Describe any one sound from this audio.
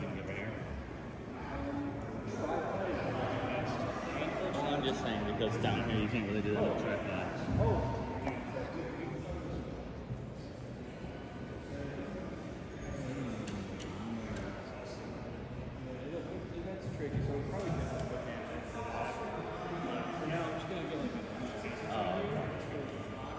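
Distant voices murmur and echo through a large hall.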